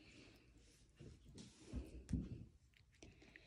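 A cat crunches dry food from a bowl.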